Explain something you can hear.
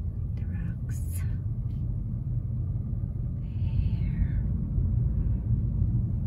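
A car engine rumbles low and steady as it drives along a road.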